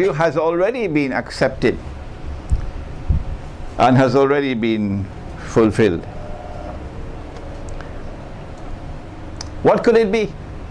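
An older man speaks slowly and with emphasis into a microphone, with pauses between phrases.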